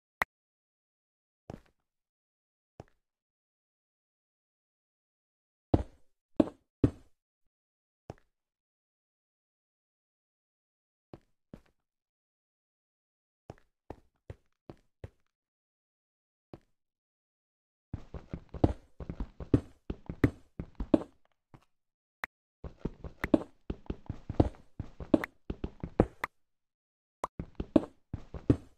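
Stone blocks are dug with a pickaxe in quick, repeated knocks and crumbles.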